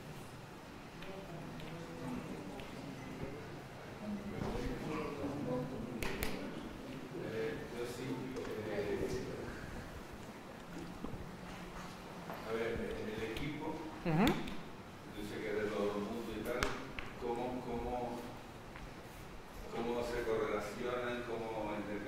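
A man speaks calmly through a microphone in a room with a slight echo.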